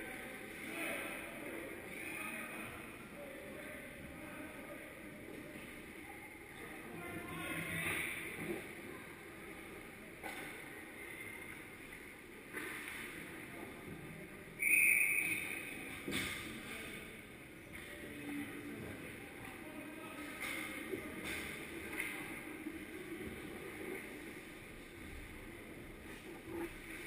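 Ice skates scrape across the ice in a large echoing rink.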